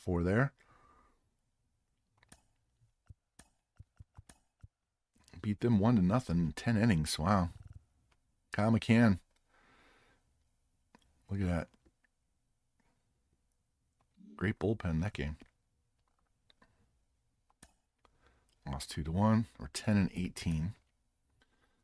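A middle-aged man talks calmly into a close microphone, in short bursts with pauses.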